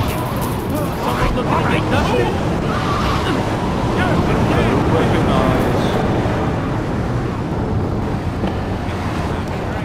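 A car engine hums and revs as a car drives along a street.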